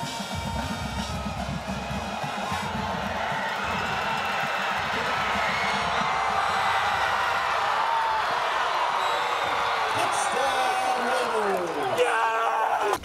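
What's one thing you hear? A crowd cheers loudly in an open stadium.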